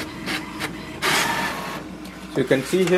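A sheet of paper rustles as it slides out of a printer.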